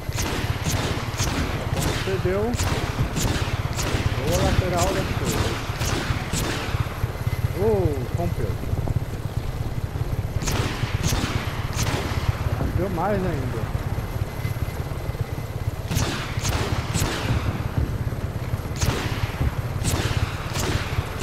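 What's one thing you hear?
A helicopter's rotor drones steadily and low.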